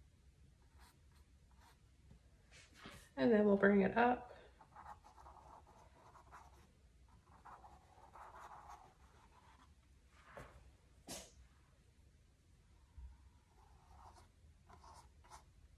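A paintbrush strokes paint onto canvas.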